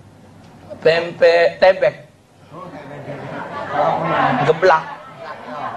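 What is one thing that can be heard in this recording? A middle-aged man speaks with animation into a microphone, heard through a loudspeaker in an echoing room.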